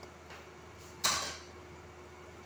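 A lid clanks onto a pan.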